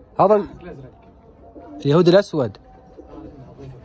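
A flock of pigeons flaps its wings overhead.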